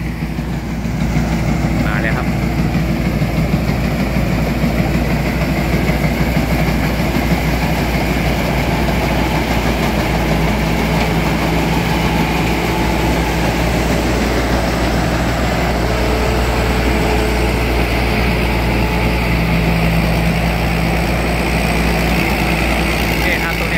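A combine harvester's cutter and threshing parts clatter and whir.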